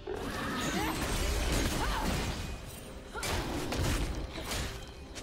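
Fantasy battle sound effects crackle and whoosh as game characters fight.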